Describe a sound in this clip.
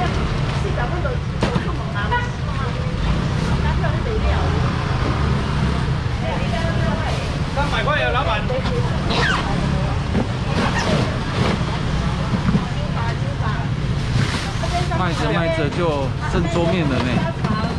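Plastic bags rustle as food is bagged.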